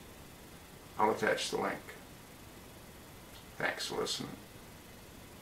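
An older man speaks calmly in short phrases close to a microphone.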